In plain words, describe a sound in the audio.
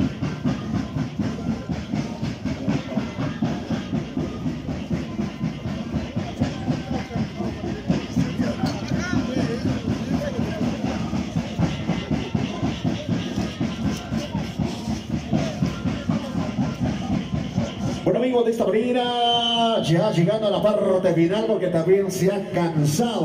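Dancers' feet shuffle and stamp in rhythm on hard ground.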